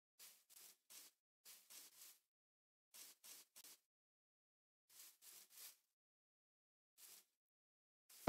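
Soft footsteps crunch on grass and dirt.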